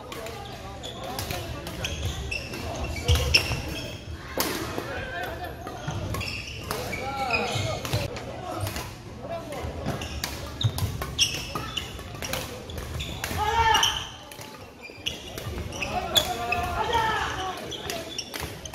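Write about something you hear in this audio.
Men and women call out and chatter across a large echoing hall.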